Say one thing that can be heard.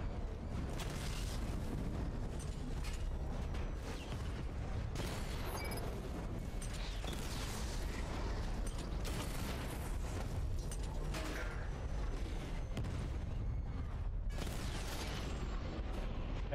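Cannon fire booms and crackles in bursts.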